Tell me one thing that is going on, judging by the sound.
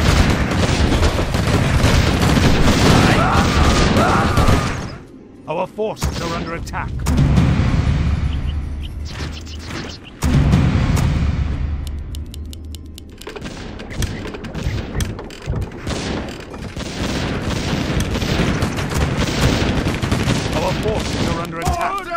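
Weapons clash and explosions boom in a battle.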